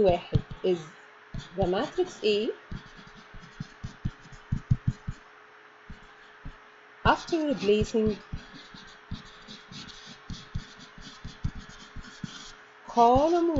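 A pen taps and scratches on a tablet as it writes.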